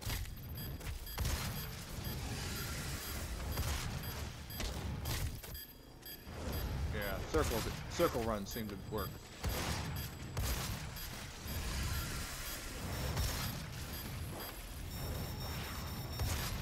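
Guns fire in rapid heavy bursts.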